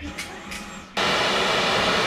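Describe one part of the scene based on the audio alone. A vacuum cleaner motor switches on and whirs loudly.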